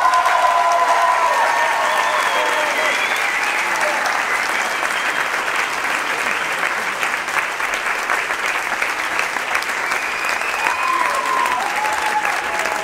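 A crowd applauds steadily in a large room.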